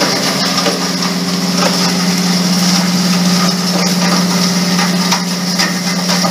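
Metal pieces clink as they drop into a plastic crate.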